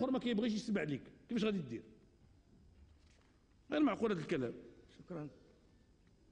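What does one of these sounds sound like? A middle-aged man speaks with animation into a microphone, in short bursts.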